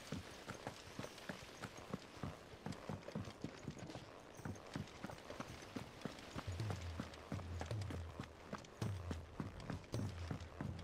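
Heavy footsteps thud quickly on hard floors and wooden planks.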